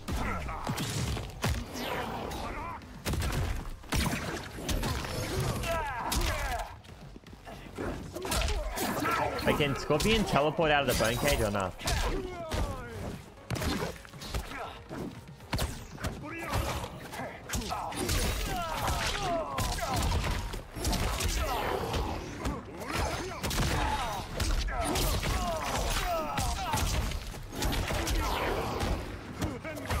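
Punches and kicks land with heavy thuds in a fighting game.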